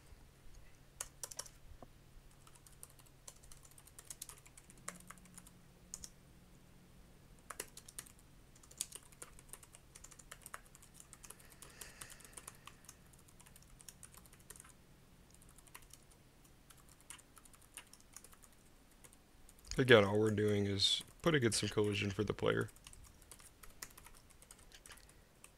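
Keys on a keyboard click in quick bursts of typing.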